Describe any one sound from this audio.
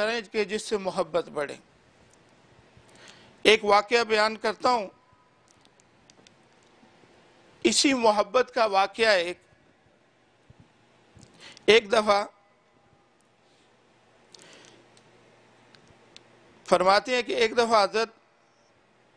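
A man chants in short bursts through a microphone, in a room with some echo.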